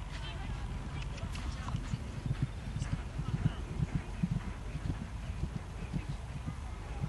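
A horse gallops on grass, its hooves thudding.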